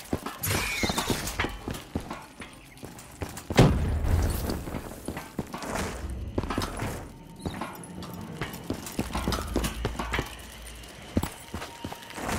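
Footsteps thud steadily over rough ground.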